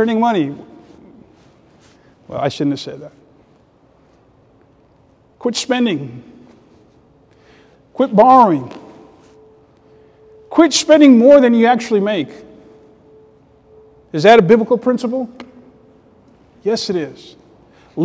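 A man speaks with emphasis into a microphone, in short phrases with pauses, in an echoing room.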